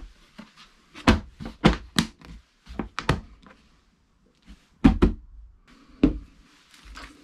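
A hand knocks and handles a hard plastic carry case.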